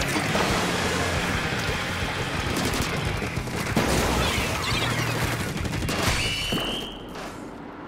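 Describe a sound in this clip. Game guns fire and splatter liquid in quick rapid bursts.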